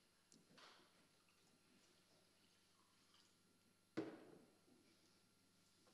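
Water pours into a glass.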